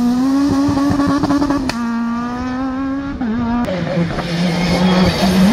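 A rally car engine howls at full throttle, shifting gears through a hairpin.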